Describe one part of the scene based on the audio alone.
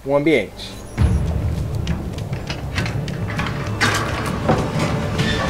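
A heavy iron gate grinds and creaks open.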